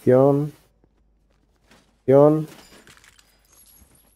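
An ammo box creaks open with a metal clunk.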